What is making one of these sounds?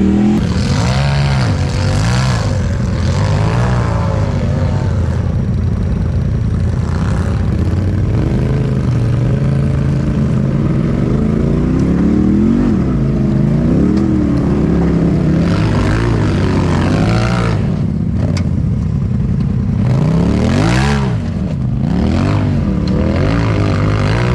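Tyres crunch and grind over rocks.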